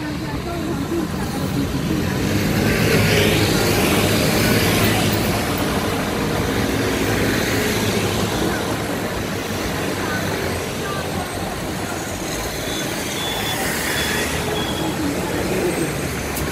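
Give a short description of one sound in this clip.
Motorcycle engines buzz past close by.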